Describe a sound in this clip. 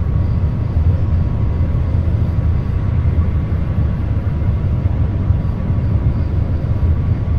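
A train rumbles steadily along the rails at speed.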